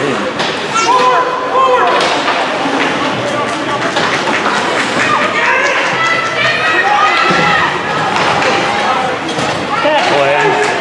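Spectators talk and call out nearby in an echoing rink.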